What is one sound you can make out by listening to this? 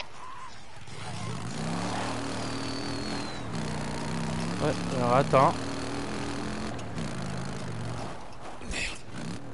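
A motorcycle engine hums and revs in a game.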